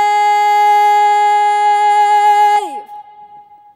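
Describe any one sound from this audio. A young woman sings loudly into a microphone in a large hall.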